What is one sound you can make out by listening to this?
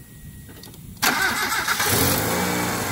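A car engine starts up suddenly.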